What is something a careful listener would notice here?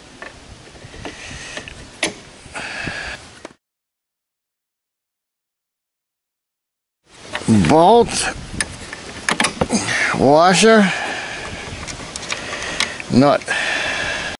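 Wooden chair parts knock and creak as they are handled.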